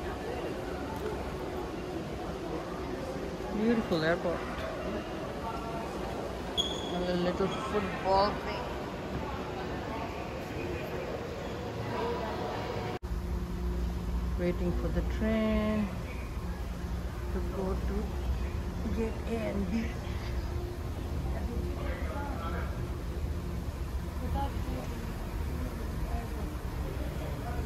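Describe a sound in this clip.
Voices of adults murmur and talk in a large echoing hall.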